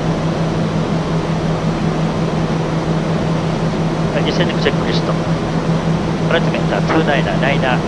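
Wind rushes steadily past the aircraft.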